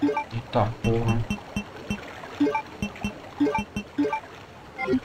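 Menu blips sound in short, quick beeps.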